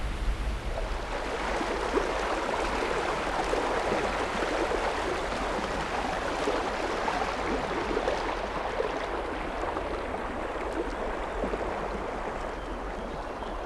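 A fast-flowing flooded river rushes and gurgles around a fallen tree.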